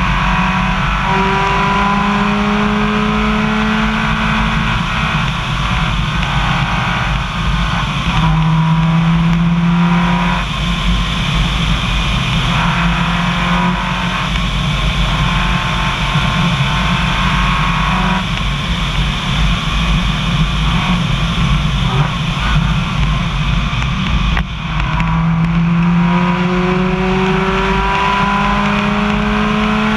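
Tyres rumble steadily on a rough road.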